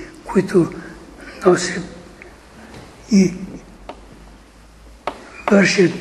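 An elderly man preaches with animation, in short bursts with pauses.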